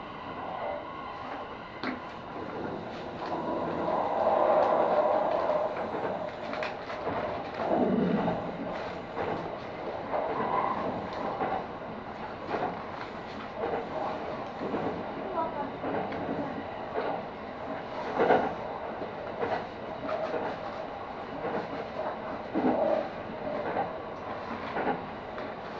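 Train wheels click and clack over rail joints.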